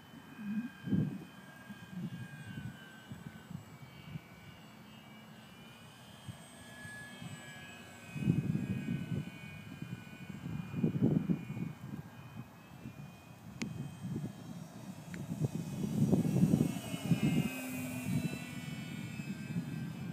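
Wind gusts rumble outdoors.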